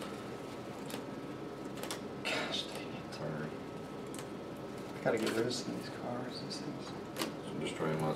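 Playing cards slap and click softly on a table.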